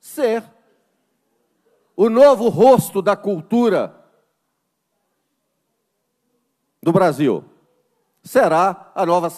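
A middle-aged man speaks forcefully into a microphone in a large room, with pauses between phrases.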